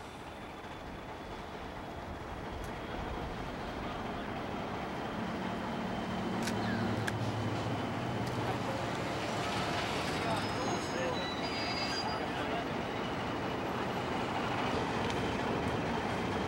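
Train wheels clatter across a steel trestle bridge.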